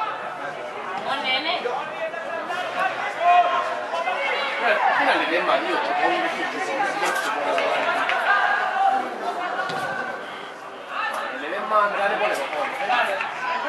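Teenage football players shout to each other outdoors.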